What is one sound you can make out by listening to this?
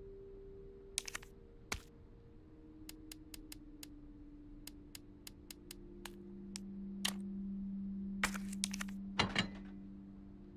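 Menu selection clicks tick sharply, one after another.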